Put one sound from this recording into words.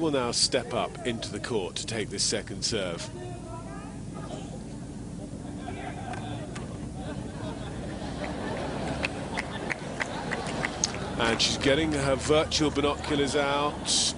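A crowd murmurs.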